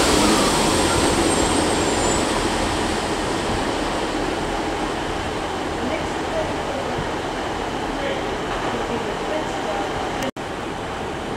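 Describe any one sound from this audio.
A train rumbles slowly into a station, its noise gradually fading.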